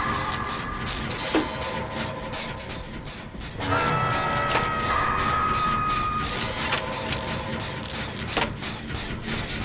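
A generator engine rattles and clanks steadily as it is repaired.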